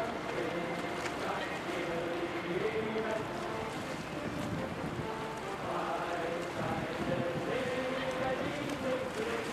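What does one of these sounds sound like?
Small waves lap against the shore.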